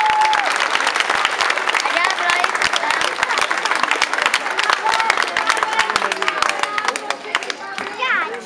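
A crowd claps and cheers outdoors.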